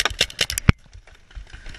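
A paintball marker fires a quick burst of shots.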